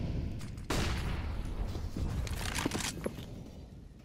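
A rifle is drawn with a metallic click and rattle.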